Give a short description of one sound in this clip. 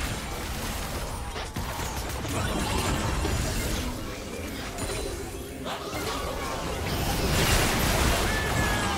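Spell effects crackle and burst in a fast game battle.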